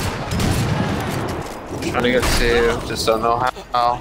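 A rifle shot cracks.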